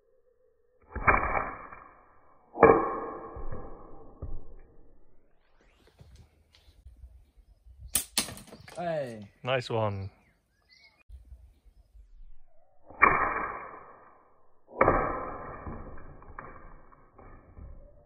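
A slingshot shot smacks into a target with a sharp, ringing crack.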